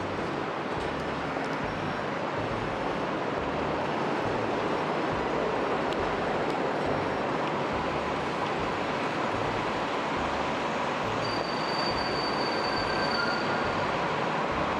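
Footsteps tap on a paved sidewalk.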